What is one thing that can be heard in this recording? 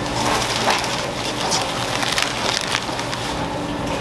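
Plastic wrap crackles as it is handled.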